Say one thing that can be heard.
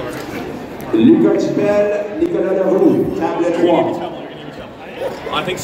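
A crowd of young men cheers and shouts loudly.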